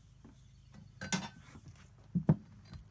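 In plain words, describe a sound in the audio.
A glass globe clinks against metal as it is lifted out.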